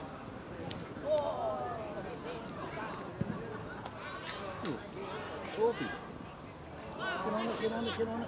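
Young men shout and call out to each other across an open playing field.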